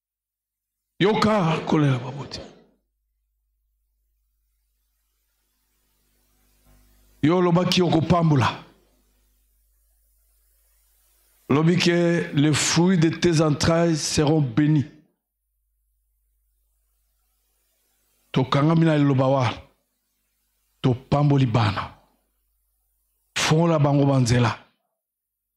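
A man speaks forcefully into a microphone in bursts, heard through loudspeakers.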